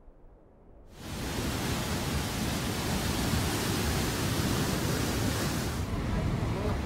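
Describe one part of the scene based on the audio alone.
Floodwater rushes and churns loudly.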